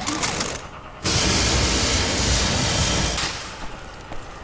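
A cutting torch hisses and crackles.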